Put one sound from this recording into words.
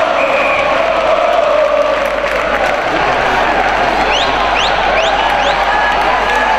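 A large crowd cheers and chants loudly in an echoing arena.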